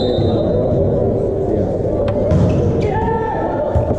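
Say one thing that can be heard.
A volleyball is struck hard by a hand.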